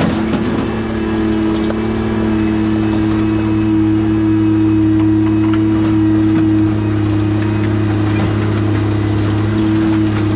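A heavy diesel engine hums steadily close by.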